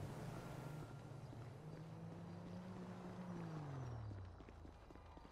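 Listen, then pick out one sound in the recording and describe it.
A car engine hums as a car drives past and fades.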